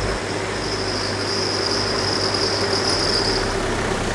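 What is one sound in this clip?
A car drives slowly along a street toward the listener.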